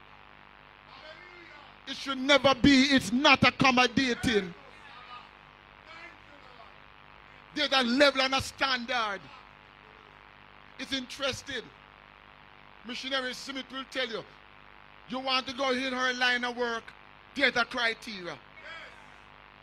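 An elderly man preaches with animation into a microphone, in bursts with pauses, heard through a loudspeaker.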